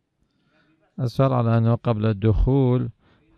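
A man speaks in a drawn-out, melodic voice through a microphone.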